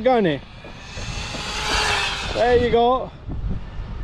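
A toy car zips past with a hissing whoosh.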